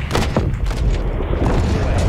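A missile launches with a roaring whoosh.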